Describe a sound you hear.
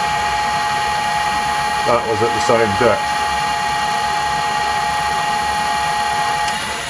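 A lathe runs with a steady whine and hum.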